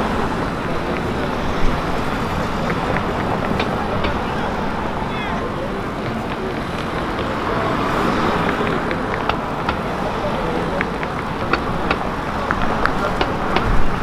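Traffic and city crowd noise hum steadily outdoors.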